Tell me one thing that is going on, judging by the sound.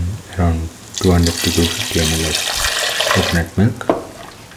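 Liquid pours into a pot with a rushing splash.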